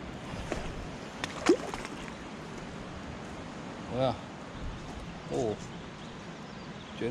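Shallow water trickles softly over stones.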